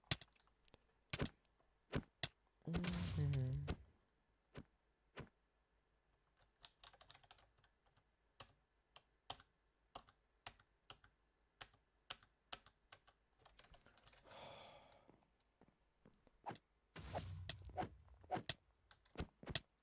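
Footsteps tap quickly on wooden boards.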